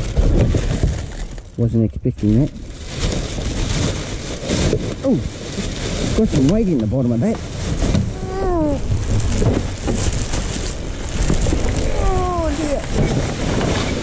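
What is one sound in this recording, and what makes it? A plastic bin bag rustles and crinkles close by.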